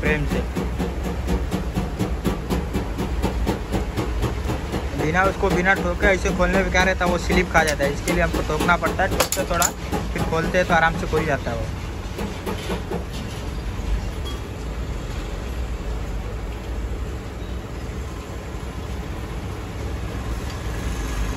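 A metal tool clinks against a metal pipe.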